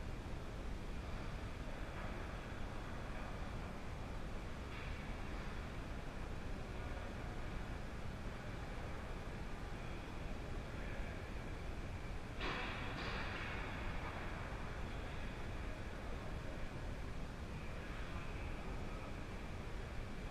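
Skates scrape and carve across ice in a large, echoing rink.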